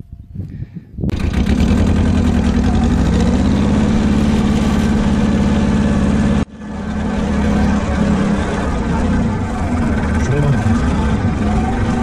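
A small tractor engine runs loudly and steadily close by.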